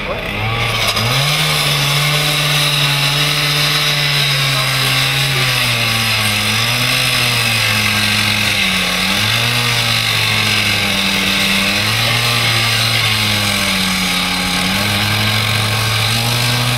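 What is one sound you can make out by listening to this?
A disc cutter grinds loudly through metal with a harsh hiss.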